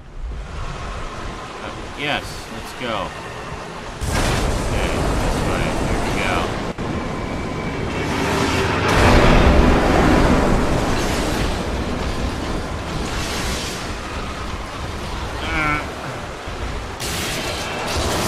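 A man talks with animation through a close microphone.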